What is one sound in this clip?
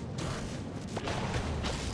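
A magical blast whooshes and crackles.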